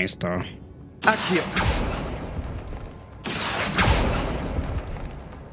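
A spell is cast with a rushing whoosh.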